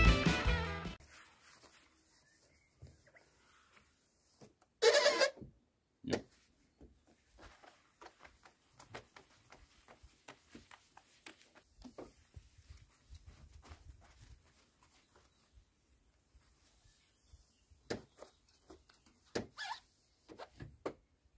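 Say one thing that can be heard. A tailgate panel knocks and rattles as it is handled.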